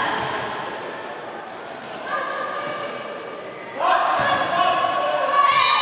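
A crowd of spectators shouts and chants in an echoing indoor hall.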